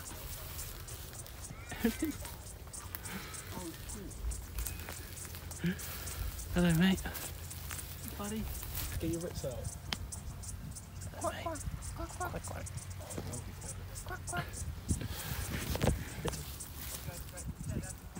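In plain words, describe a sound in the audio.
A small animal rustles through dry grass close by.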